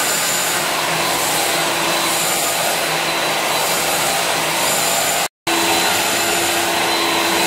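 A vacuum cleaner roars, sucking through a floor wand.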